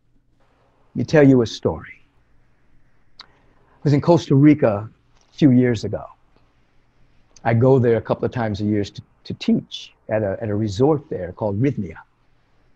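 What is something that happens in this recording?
A middle-aged man speaks calmly and earnestly over an online call.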